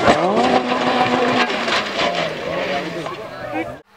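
Tyres skid and scatter gravel.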